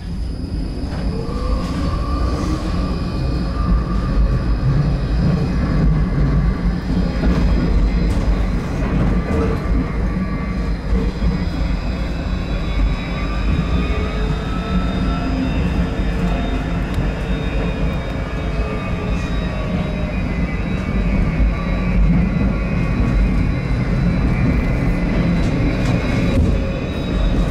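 An electric motor whines, rising and falling in pitch as the tram speeds up and slows.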